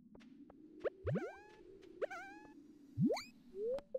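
A short bright rising chime plays as an item is picked up.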